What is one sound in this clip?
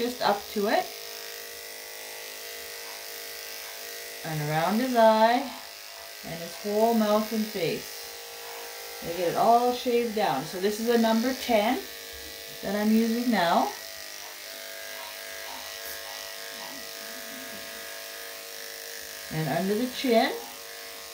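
Electric clippers buzz steadily up close.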